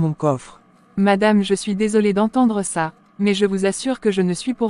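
A woman answers apologetically and close by.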